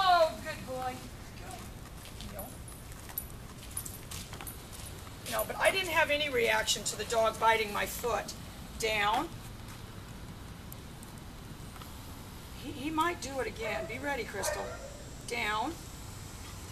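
A woman speaks calmly nearby, outdoors.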